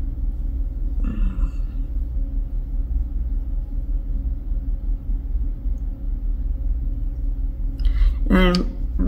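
A woman sobs and whimpers close by.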